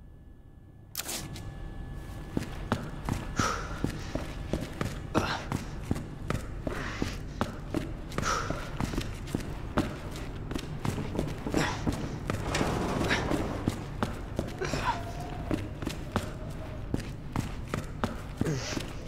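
Quick footsteps run across a hard floor in a large echoing hall.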